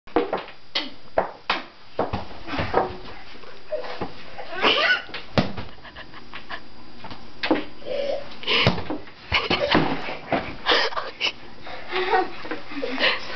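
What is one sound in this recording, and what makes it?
Young children shout and squeal excitedly nearby.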